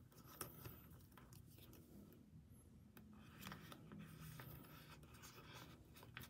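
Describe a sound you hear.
Cards slide in and out of plastic sleeves.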